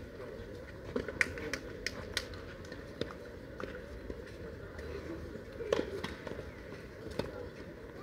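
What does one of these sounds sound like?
Tennis balls are struck with rackets in a rally.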